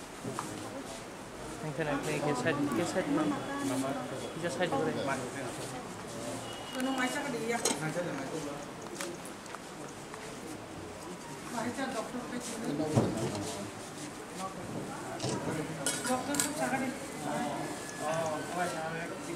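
Several men and women talk at once nearby in a room with a slight echo.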